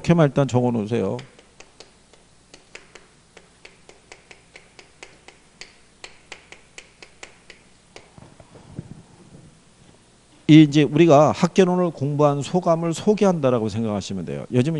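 A middle-aged man lectures with animation through a close microphone.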